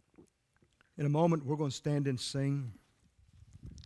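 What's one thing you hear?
A middle-aged man speaks into a microphone in a large echoing hall.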